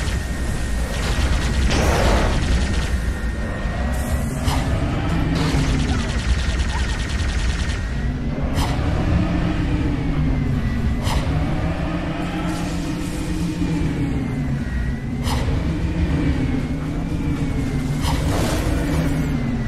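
Plasma guns fire in sharp bursts.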